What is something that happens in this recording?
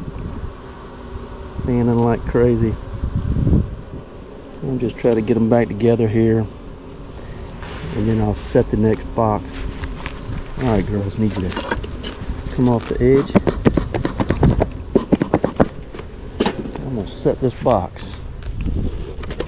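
A metal tool scrapes and knocks against wood.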